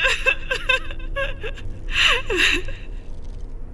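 A woman sobs nearby.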